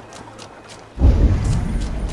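A deep magical whoosh booms and rumbles.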